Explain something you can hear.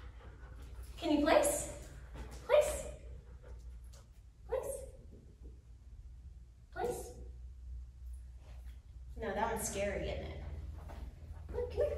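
A woman speaks short encouraging words to a dog in a room with a slight echo.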